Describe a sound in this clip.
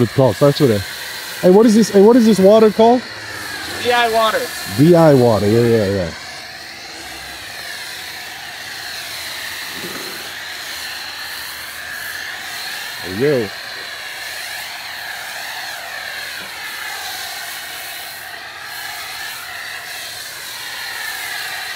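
A foam sprayer hisses as it sprays a car.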